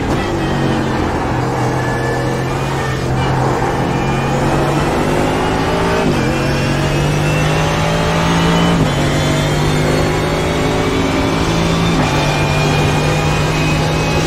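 A racing car engine roars and climbs in pitch as it speeds up.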